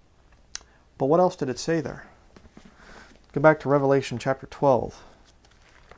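A man speaks calmly and close by, as if reading out.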